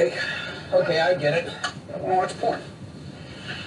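A woman speaks with animation, heard through a loudspeaker.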